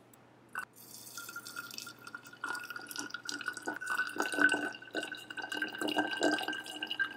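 Water trickles and splashes into a glass bottle.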